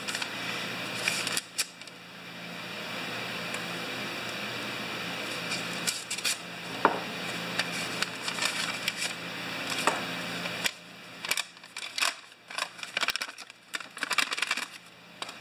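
A sheet of paper rustles and crinkles as it is handled and folded.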